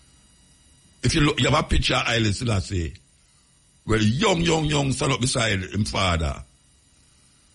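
A man speaks close to a microphone in two short bursts.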